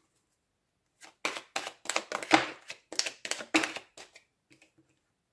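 A deck of cards is shuffled with quick flicking riffles.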